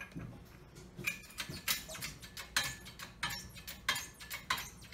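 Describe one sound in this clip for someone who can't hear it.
A hydraulic press handle clanks as it is pumped.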